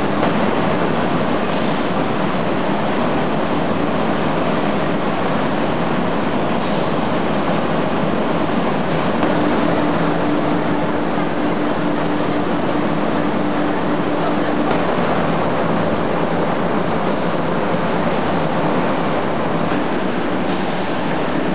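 Factory machinery hums and rumbles steadily.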